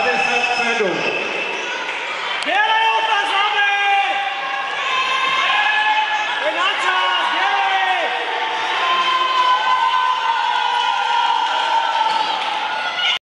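A group of men and women shout and whoop with excitement in an echoing hall.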